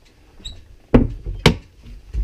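A hand knocks on a hollow boat hull.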